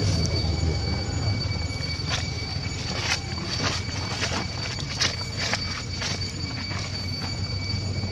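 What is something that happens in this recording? Dry leaves crunch and rustle under a monkey's steps.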